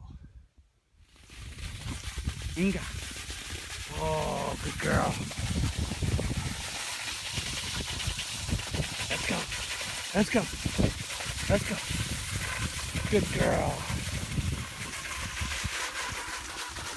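A dog's paws patter and crunch on snow.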